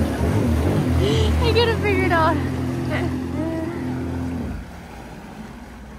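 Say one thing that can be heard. Water churns and splashes.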